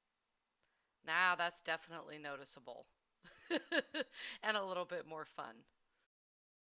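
A woman speaks cheerfully into a headset microphone.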